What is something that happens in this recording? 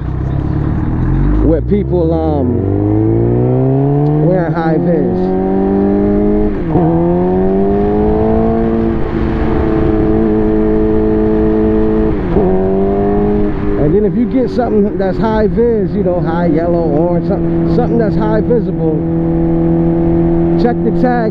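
A motorcycle engine roars as it accelerates through the gears.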